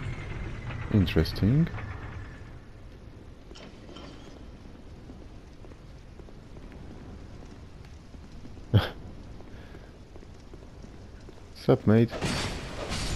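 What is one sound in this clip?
A monstrous creature lets out loud, shrieking roars.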